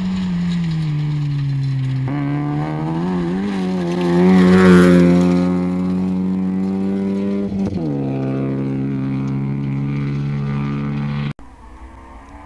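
A rally car engine roars close by and revs as the car speeds past.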